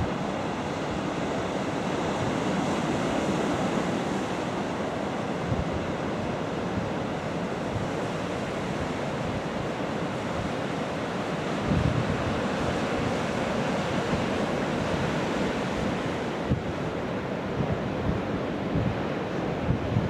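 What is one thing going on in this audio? Ocean waves roar and crash onto a beach.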